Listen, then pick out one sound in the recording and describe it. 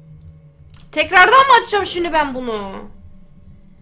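A young woman cries out loudly close to a microphone, her voice sliding downward.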